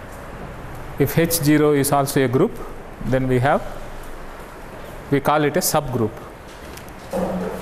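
A middle-aged man speaks calmly into a clip-on microphone.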